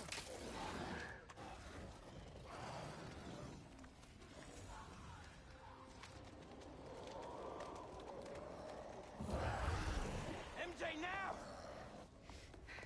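Creatures snarl and growl.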